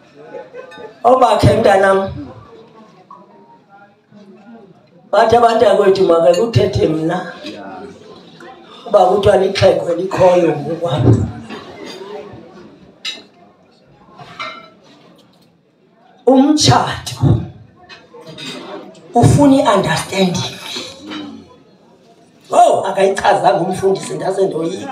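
A man speaks loudly through a microphone and loudspeaker in short bursts, with pauses between phrases.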